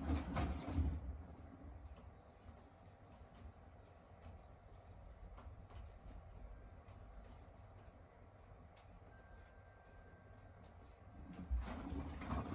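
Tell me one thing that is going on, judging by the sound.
A washing machine hums quietly while its drum pauses.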